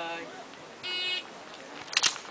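A shot timer beeps once.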